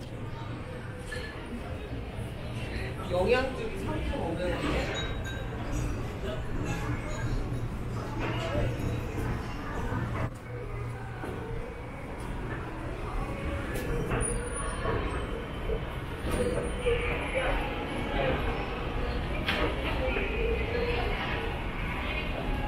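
A crowd of people chatters in a large echoing indoor hall.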